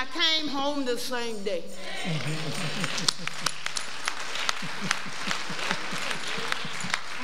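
A woman preaches with passion into a microphone in an echoing room, her voice rising into long, sung-out notes.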